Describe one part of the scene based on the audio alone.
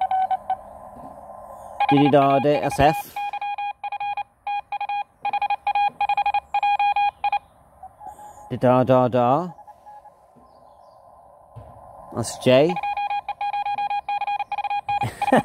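A radio receiver hisses softly with static.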